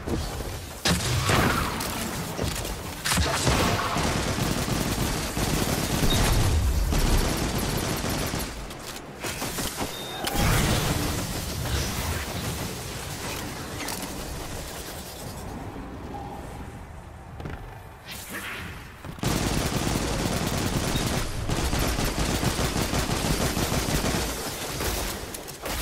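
Guns fire in rapid bursts with loud blasts.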